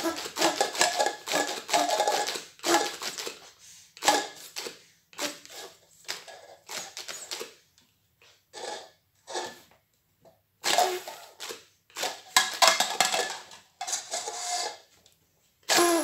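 A young child blows a paper party horn in short, buzzing bursts.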